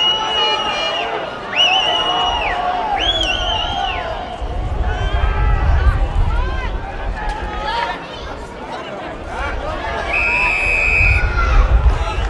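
An umpire's whistle blows in short shrill blasts.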